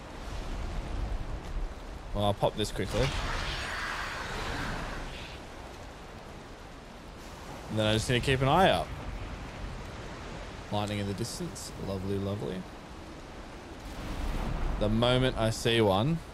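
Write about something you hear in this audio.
Stormy waves crash and wind roars steadily.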